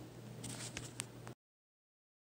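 Metal test probes tap lightly against a circuit board.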